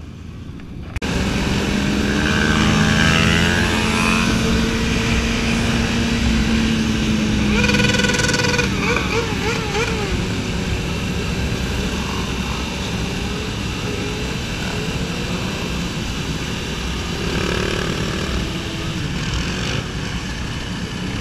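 Motorcycle engines roar and rev close by.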